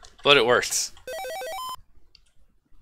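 A retro computer game gives a short electronic beep melody.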